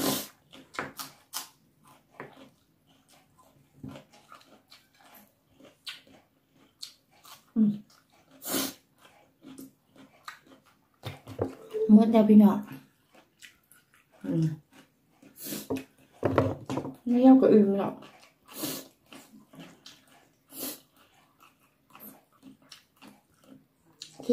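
A woman chews and smacks her lips while eating.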